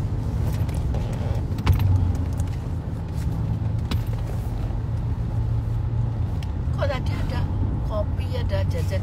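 A middle-aged woman talks close by, casually.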